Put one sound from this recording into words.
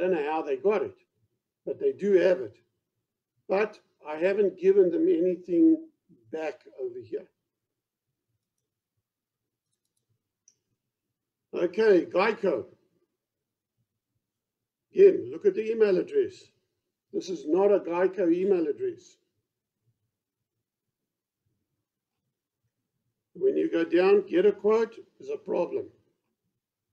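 An elderly man speaks calmly over an online call, in short phrases with pauses.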